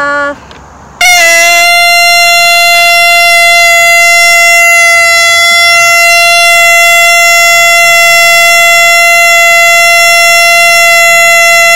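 A man blows a long, steady blast on a horn.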